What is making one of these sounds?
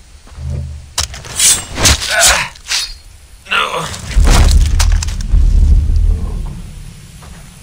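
Knife slices and tears wetly through an animal carcass.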